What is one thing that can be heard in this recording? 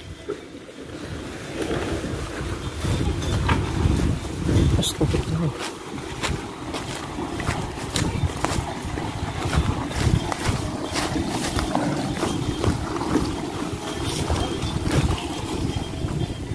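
A heavy log scrapes and drags through mud.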